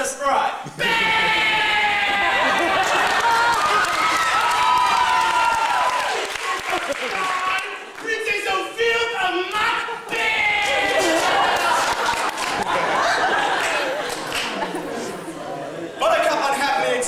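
A choir of young men sings together in a large echoing hall.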